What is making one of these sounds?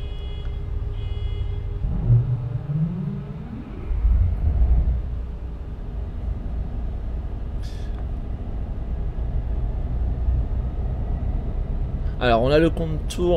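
A train engine hums and rumbles steadily from inside the cab.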